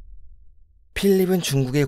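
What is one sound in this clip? An elderly man speaks calmly.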